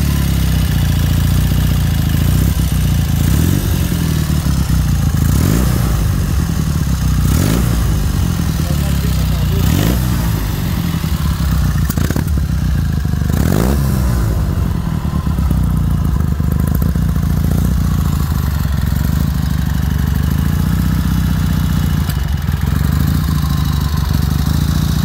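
A motorcycle engine idles with a deep, steady rumble.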